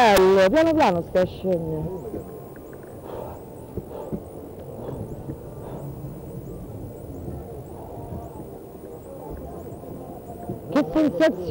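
Wind rushes and buffets outdoors throughout.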